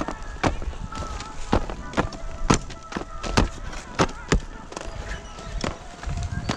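Skis scrape and clatter on packed snow.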